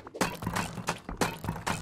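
A hammer strikes a wooden wall.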